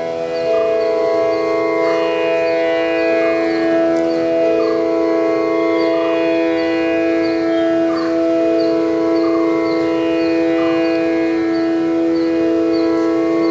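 A bamboo flute plays a flowing melody through a microphone.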